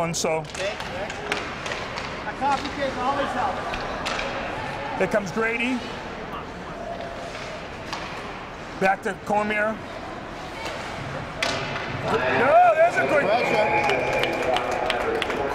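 A crowd of spectators cheers and shouts in a large echoing rink.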